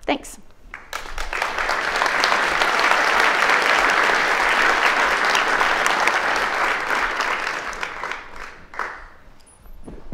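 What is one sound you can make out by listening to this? An audience applauds loudly in a large hall, then the clapping fades.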